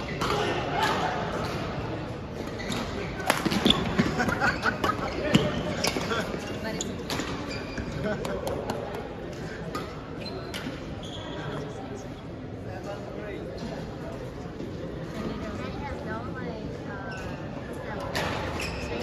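Badminton rackets smack a shuttlecock back and forth.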